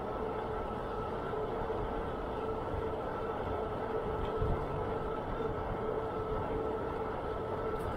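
Bicycle tyres hum steadily on a paved path.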